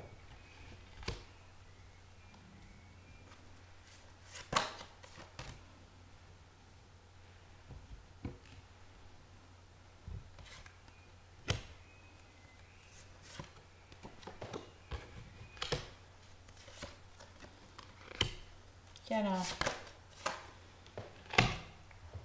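Cards tap and slide softly onto a table.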